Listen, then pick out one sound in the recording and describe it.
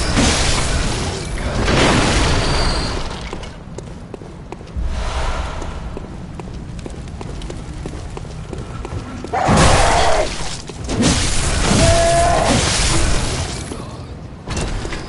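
Footsteps patter on cobblestones.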